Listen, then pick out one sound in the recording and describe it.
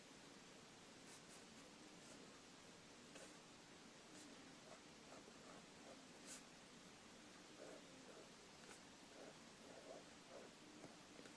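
A pen scratches softly on paper in short strokes.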